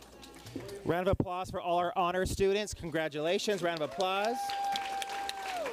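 An audience cheers and whoops loudly in a large hall.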